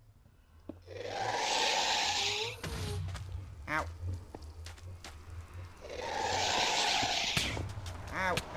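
A magical portal hums with a wavering, rushing whoosh.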